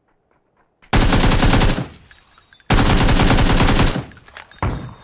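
A rifle fires in rapid automatic bursts, echoing.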